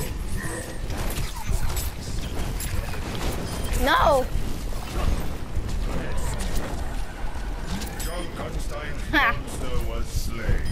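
Explosions and impacts thump loudly.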